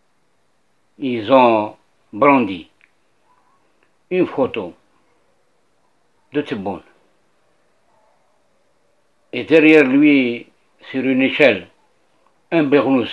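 An elderly man speaks calmly in short phrases over an online call.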